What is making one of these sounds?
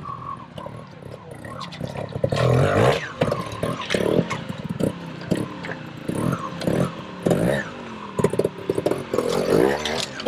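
A motorcycle engine revs in short bursts close by.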